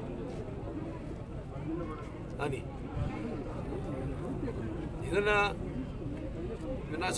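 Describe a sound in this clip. A middle-aged man speaks firmly into microphones close by.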